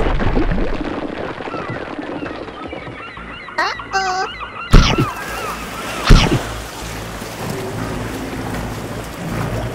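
Water laps and splashes around boats.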